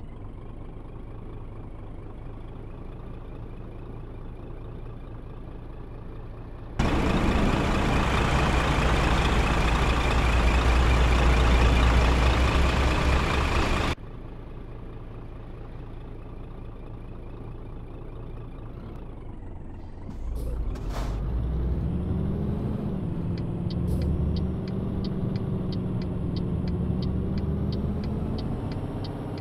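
A truck engine hums steadily inside a cab.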